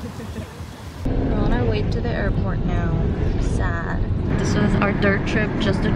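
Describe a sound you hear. A young woman talks cheerfully up close.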